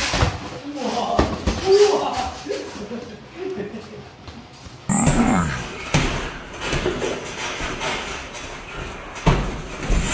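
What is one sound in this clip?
Boxing gloves thud against pads and headgear.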